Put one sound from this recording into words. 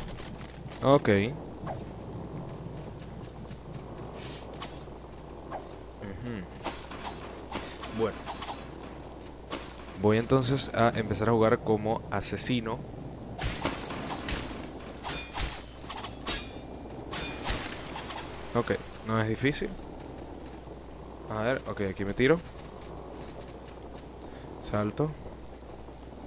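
A young man talks animatedly into a close microphone, in short bursts.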